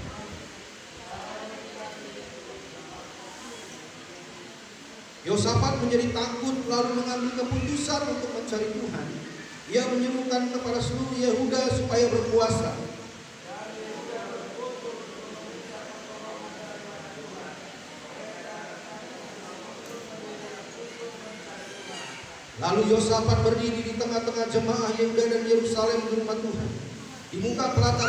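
A man speaks through a microphone and loudspeakers in an echoing hall.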